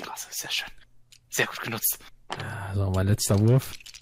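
Dice clatter across a wooden table.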